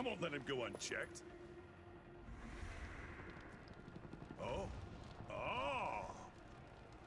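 A man speaks in a deep, gruff voice.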